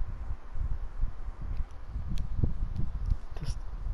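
A game menu clicks open.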